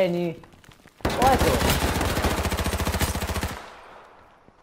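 A rifle fires a long rapid burst.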